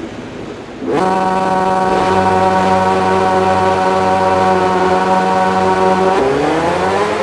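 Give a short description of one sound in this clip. Motorcycle engines idle and rev loudly on a starting grid.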